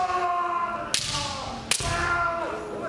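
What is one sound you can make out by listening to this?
Bamboo swords strike with sharp cracks.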